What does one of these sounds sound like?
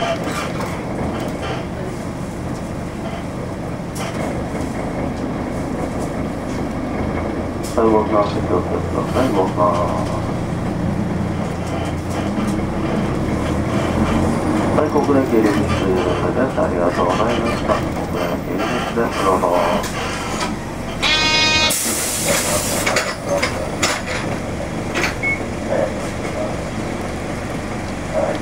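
Car engines hum and tyres roll past on a city street.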